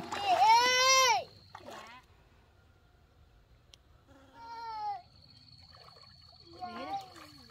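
A small child calls out in a high voice nearby.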